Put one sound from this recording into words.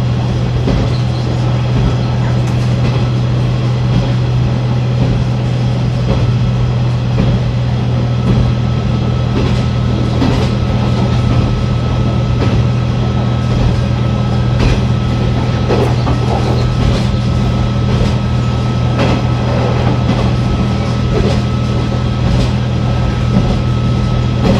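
Train wheels click and clatter over the rail joints.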